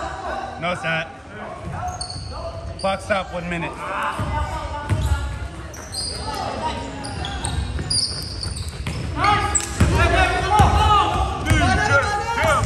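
Young men call out and shout to each other in an echoing hall.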